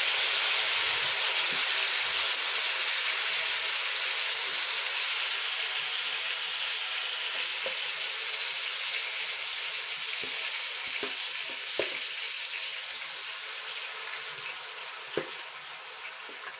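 A ladle clinks against a pan.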